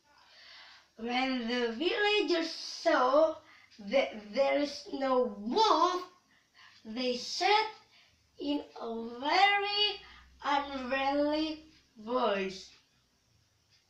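A young woman speaks with animation close by, her voice rising and falling expressively.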